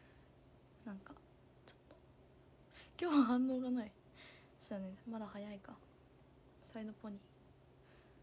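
A young woman talks casually and close by, in short bursts.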